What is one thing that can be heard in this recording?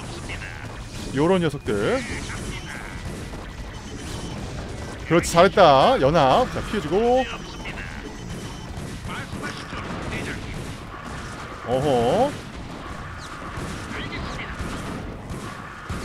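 Game gunfire and small explosions crackle in quick bursts.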